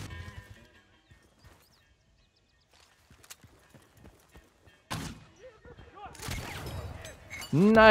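A rifle fires sharp shots.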